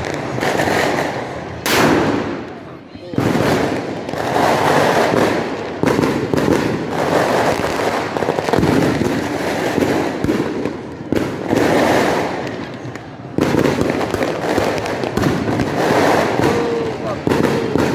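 Fireworks bang and crackle nearby, over and over.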